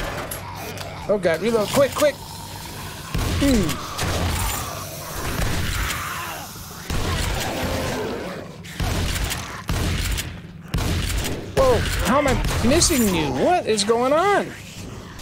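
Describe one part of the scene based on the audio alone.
Zombies growl and groan nearby.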